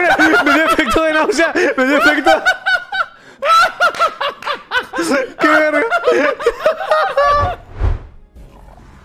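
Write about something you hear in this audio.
A young man talks and laughs loudly into a microphone.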